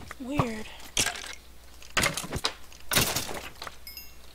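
A sword strikes an animal with sharp thuds.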